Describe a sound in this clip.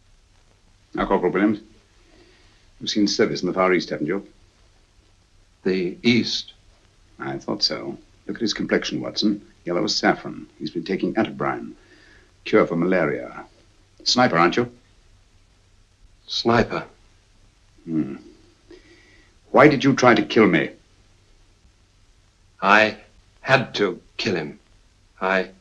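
A young man speaks nervously in short phrases, close by.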